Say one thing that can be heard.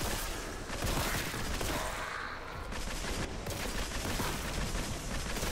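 Fiery blasts explode with a roar.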